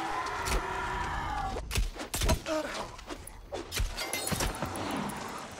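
A sword slashes and strikes a creature with sharp impacts.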